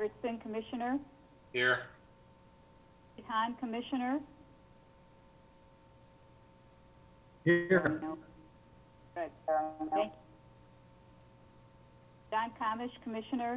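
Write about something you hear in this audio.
A middle-aged woman speaks over an online call in short phrases.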